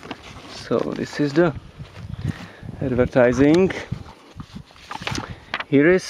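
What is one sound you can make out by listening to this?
Paper rustles as a booklet is lifted out of a cardboard box.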